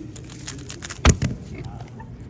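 A puzzle cube thuds down onto a mat.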